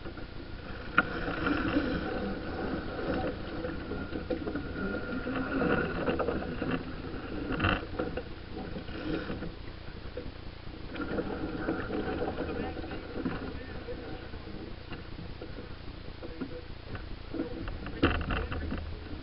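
Ropes and fittings knock and clatter on deck.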